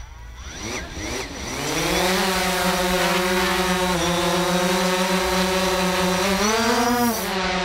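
A drone's rotors whir up and buzz steadily close by.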